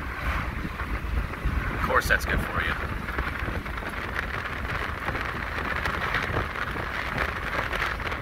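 A car drives along a road, heard from inside the car.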